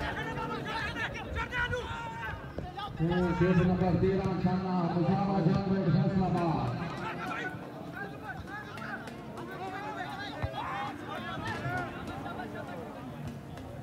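A crowd of spectators cheers and chatters in the distance.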